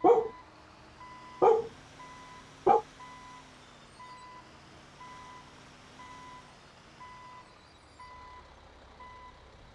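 A truck's reversing alarm beeps steadily.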